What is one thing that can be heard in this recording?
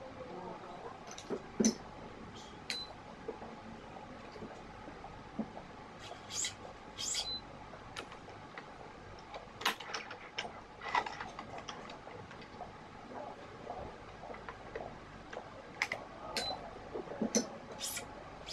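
Racket strings are pulled and rustle with short, thin swishes.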